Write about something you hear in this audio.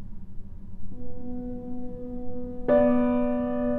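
A bright synthesizer chord rings out and swells loudly.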